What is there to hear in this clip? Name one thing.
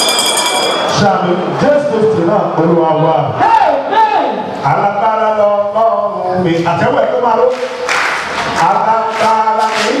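A man sings through a microphone with feeling.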